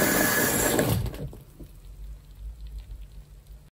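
Soapy foam softly fizzes and pops.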